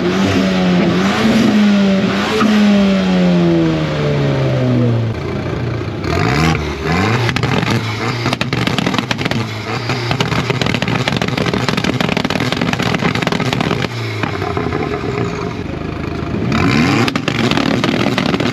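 A tuned car engine revs hard close by, its pitch rising and falling.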